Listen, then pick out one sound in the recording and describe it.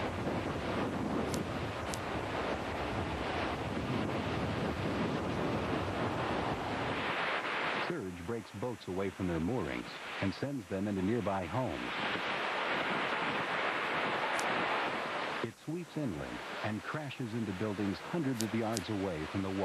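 Strong storm wind roars outdoors.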